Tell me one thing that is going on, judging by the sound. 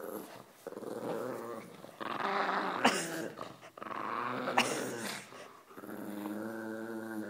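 A small dog growls close by.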